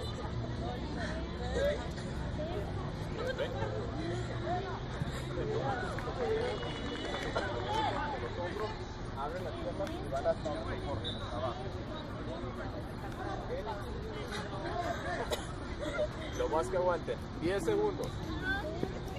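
Several young women chatter and laugh nearby, outdoors.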